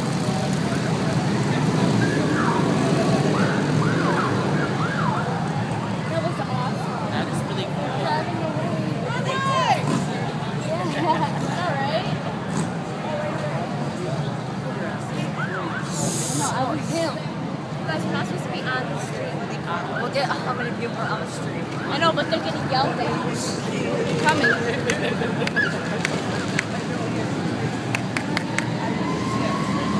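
A large crowd of men and women chatters outdoors nearby, with many voices talking at once.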